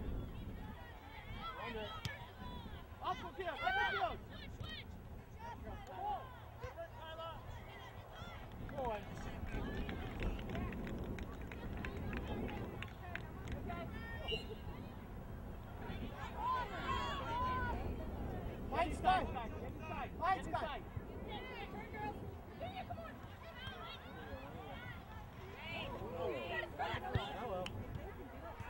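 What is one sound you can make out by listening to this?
Men and women on the sidelines shout and cheer outdoors.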